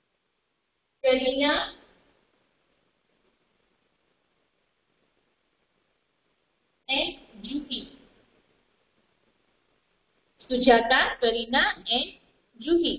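A woman speaks clearly in short phrases, close by.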